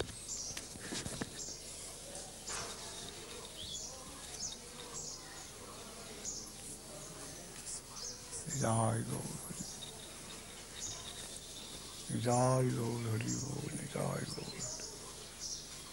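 An elderly man speaks slowly and softly, close to a microphone, with long drawn-out words.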